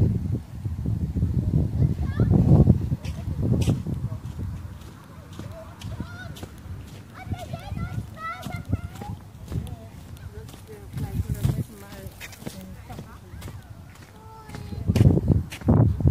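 Footsteps crunch softly on sand.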